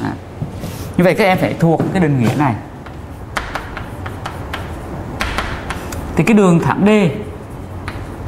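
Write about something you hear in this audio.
A man speaks clearly into a microphone, lecturing.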